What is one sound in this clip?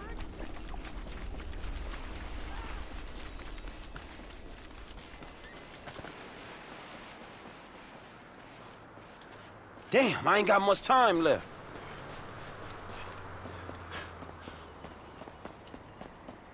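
Footsteps run across sand and grass.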